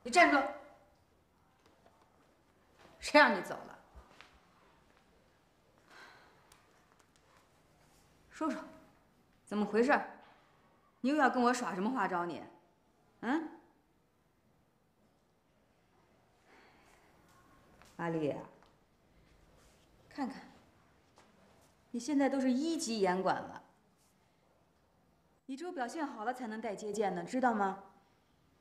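A woman speaks firmly and sharply, close by.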